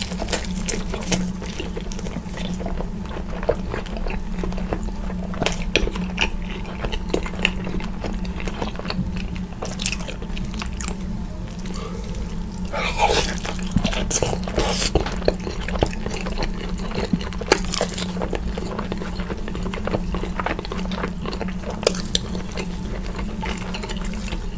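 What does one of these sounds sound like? A man chews food wetly and smacks his lips close to a microphone.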